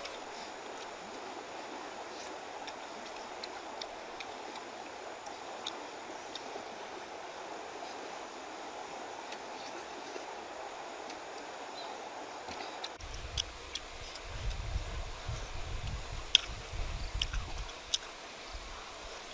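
A young woman chews and crunches food close by.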